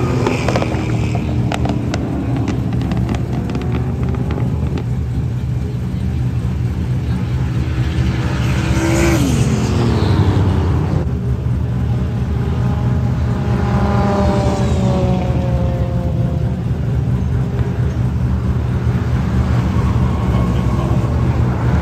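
Tyres squeal as cars drift and slide.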